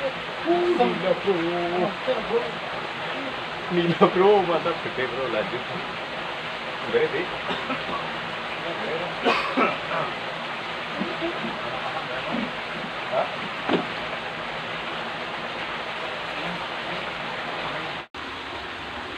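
Water trickles and flows steadily in a narrow channel.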